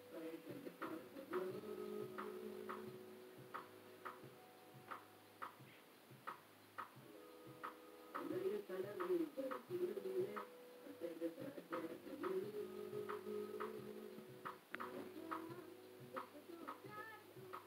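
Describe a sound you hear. Electronic music with a steady beat plays through loudspeakers.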